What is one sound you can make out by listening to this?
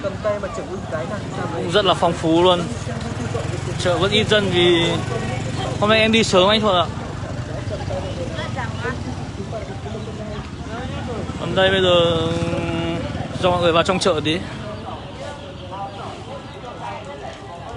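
Motorbike engines hum past on a street.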